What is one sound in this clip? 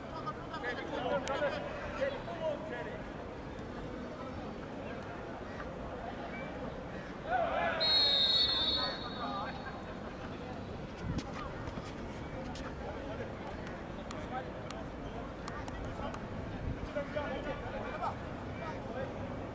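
Men shout across a football pitch.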